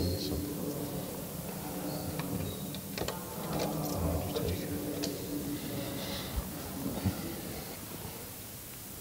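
A man chants slowly in an echoing hall.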